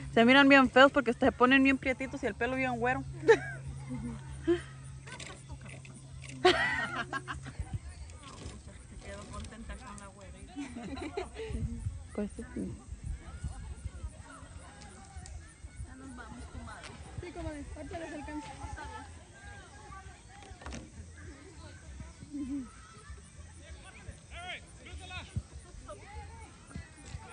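Young men shout to each other in the distance across an open field.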